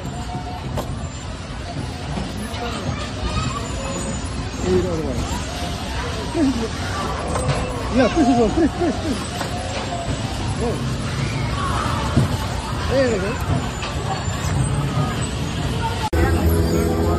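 Bumper cars hum and clatter across the floor.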